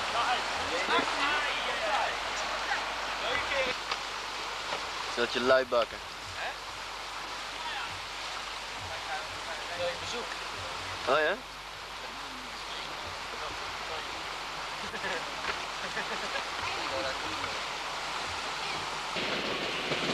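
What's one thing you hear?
Men and women talk and call out nearby outdoors.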